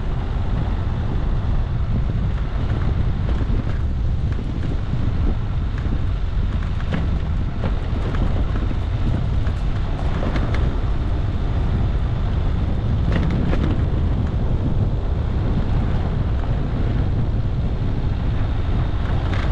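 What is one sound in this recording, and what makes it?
A vehicle engine rumbles steadily while driving slowly.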